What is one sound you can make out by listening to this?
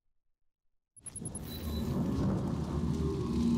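Flames crackle and roar with a low rumble.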